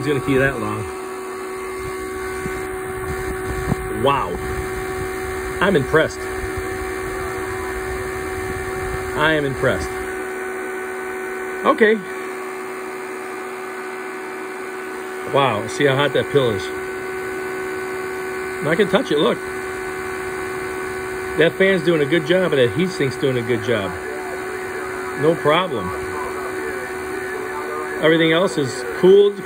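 A power supply hums steadily.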